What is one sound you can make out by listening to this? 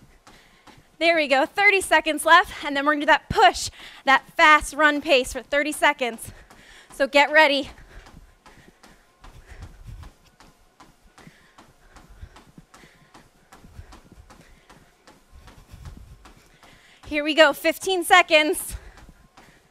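A young woman speaks energetically into a close headset microphone.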